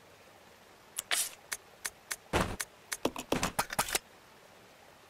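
Menu selections click and beep in quick succession.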